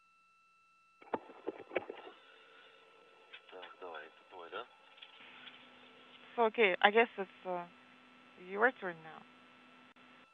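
A man speaks briefly through a radio link.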